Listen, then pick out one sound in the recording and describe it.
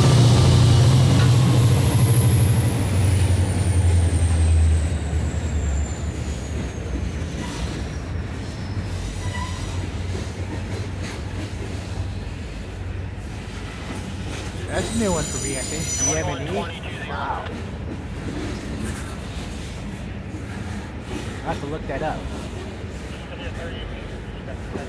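Freight car wheels clatter and rumble steadily over the rails.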